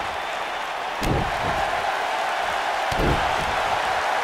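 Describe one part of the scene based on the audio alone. A heavy thud lands on a wrestling ring mat.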